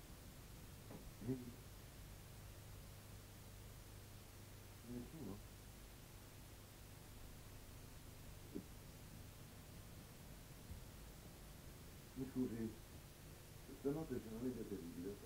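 A man speaks in short, tense bursts nearby.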